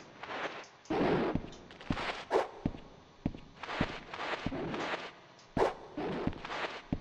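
Heavy blows thud and crack in quick succession.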